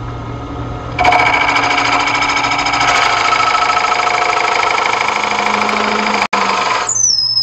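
A gouge scrapes and cuts spinning wood with a loud rough whir.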